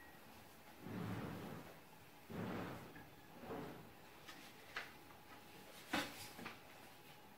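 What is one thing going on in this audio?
Objects knock and clatter on a small cabinet nearby.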